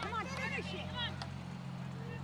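A hockey stick smacks a ball.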